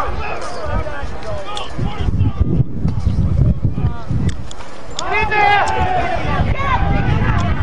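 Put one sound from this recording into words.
Young men on the sideline shout and cheer loudly outdoors.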